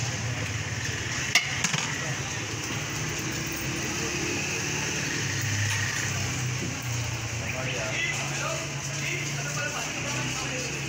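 Busy street traffic hums steadily in the background outdoors.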